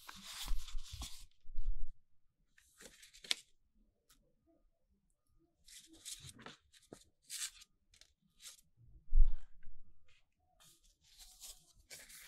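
Hands handle and rustle stiff paper and plastic sleeves up close.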